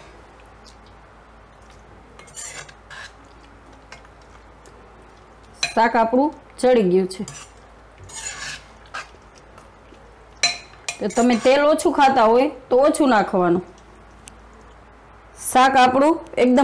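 A spoon scrapes and stirs thick food in a metal pot.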